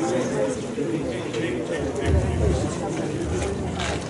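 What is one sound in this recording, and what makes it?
A man speaks into a microphone, heard through loudspeakers outdoors.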